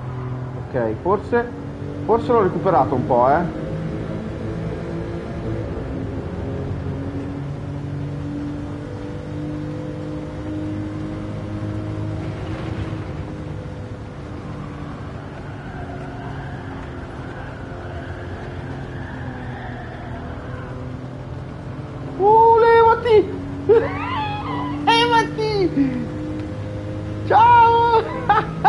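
A car engine drones steadily at high revs.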